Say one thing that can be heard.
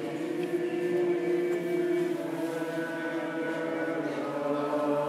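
A man chants slowly in a low, sustained voice.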